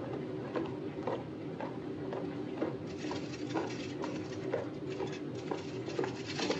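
Footsteps walk briskly on a hard floor.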